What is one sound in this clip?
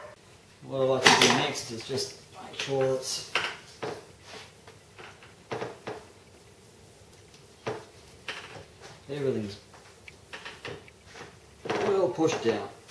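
Hands rub and press on a plastic sheet.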